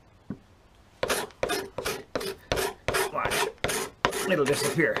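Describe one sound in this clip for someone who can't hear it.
A knife shaves wood in quick, rhythmic scraping strokes.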